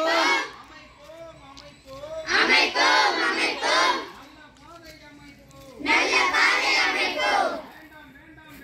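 A group of young girls chant loudly together in bursts, close by.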